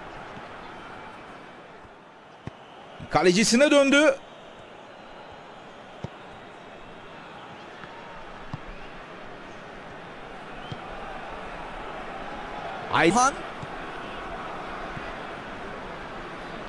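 A stadium crowd murmurs and roars steadily in the background.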